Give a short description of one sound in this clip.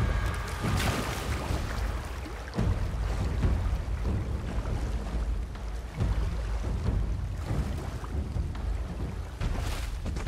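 Water splashes as a figure swims through a pond.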